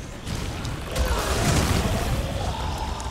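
A blade swishes sharply through the air.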